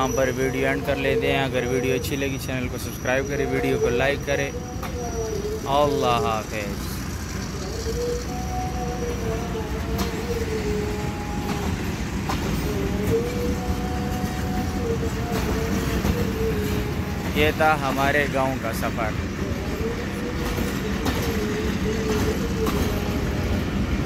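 A passenger train rolls past, rumbling on the rails.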